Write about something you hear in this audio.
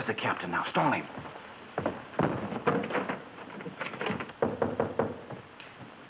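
A man speaks urgently nearby.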